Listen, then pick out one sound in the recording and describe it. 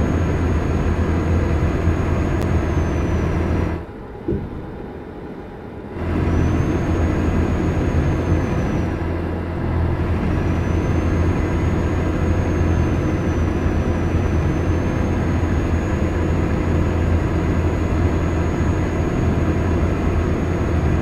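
Truck tyres rumble on the road.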